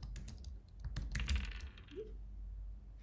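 Dice rattle as they roll.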